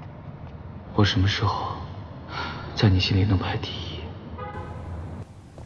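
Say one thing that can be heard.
A young man speaks quietly and close by.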